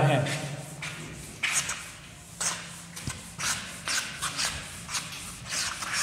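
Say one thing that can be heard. A cloth rubs across a board.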